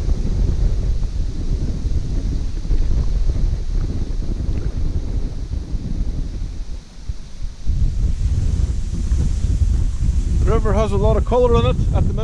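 Wind buffets and rumbles outdoors.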